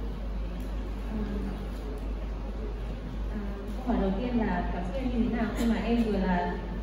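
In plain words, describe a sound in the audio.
A young woman speaks calmly into a microphone over loudspeakers in a large room.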